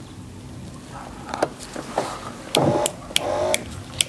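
Plastic clips click as a door panel is pried loose.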